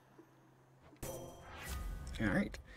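A game menu opens with a short shimmering chime.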